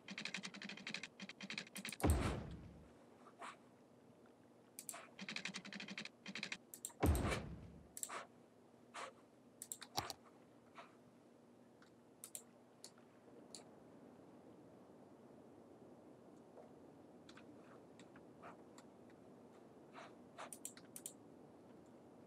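Short game sound effects click and thud as pieces are placed.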